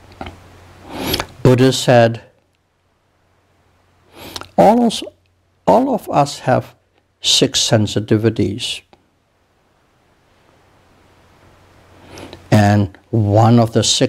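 An elderly man speaks slowly and calmly into a clip-on microphone, with long pauses.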